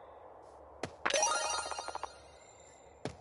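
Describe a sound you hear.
A bright chime jingles briefly.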